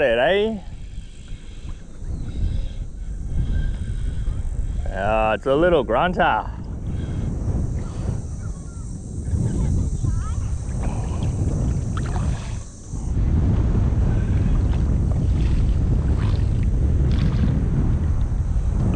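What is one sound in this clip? Wind rumbles steadily across open water.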